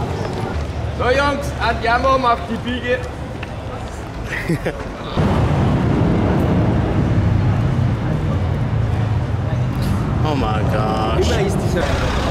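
People chatter nearby on a busy street.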